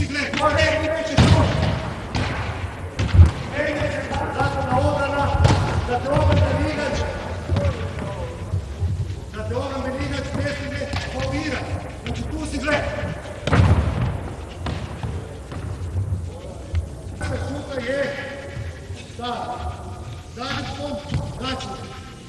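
A man talks calmly, echoing in a large hall.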